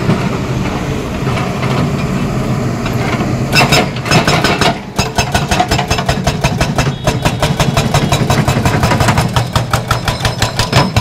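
An excavator's diesel engine rumbles.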